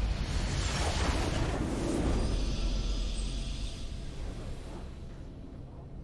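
A triumphant fanfare swells and fades.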